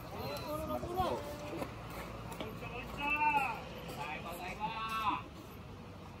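Young players shout and call out loudly outdoors.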